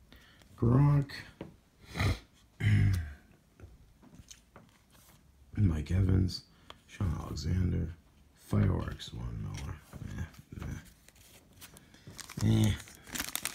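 Trading cards slide and tap against each other as they are shuffled.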